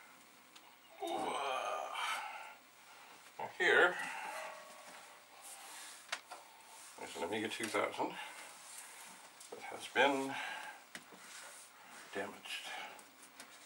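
An older man talks nearby.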